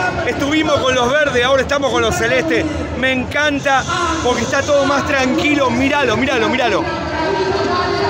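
A man shouts excitedly close by.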